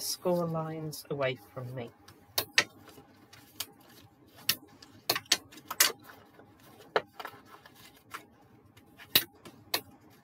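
A plastic tool taps and scrapes along a paper crease.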